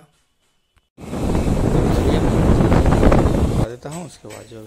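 Wind buffets the microphone loudly.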